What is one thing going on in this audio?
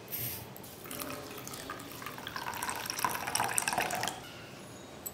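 Water pours into a metal bowl.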